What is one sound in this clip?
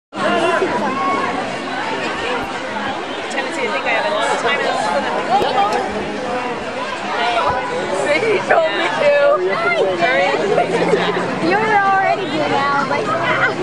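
A crowd of people chatter and call out nearby.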